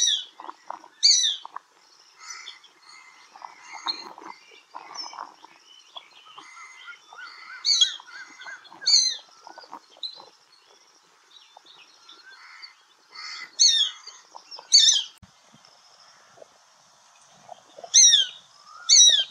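A shikra gives sharp, high, down-slurred calls.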